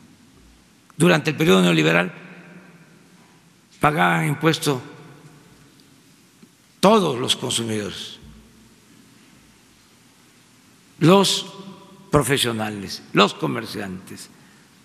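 An elderly man speaks deliberately into a microphone in short phrases, with pauses between them.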